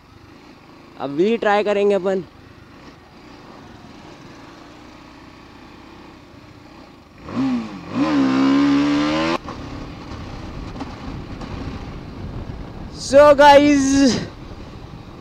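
A motorcycle engine revs loudly in short rising bursts.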